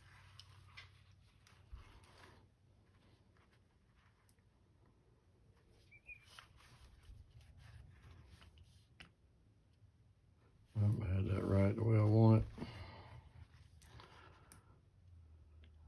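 A small metal clamp clicks and rattles.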